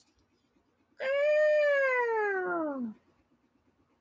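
A woman lets out a long, falling squeal.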